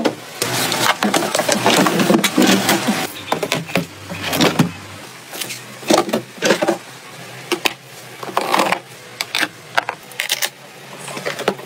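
A plastic drawer slides open and shut.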